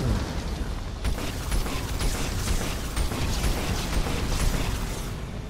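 Laser blasts zap rapidly.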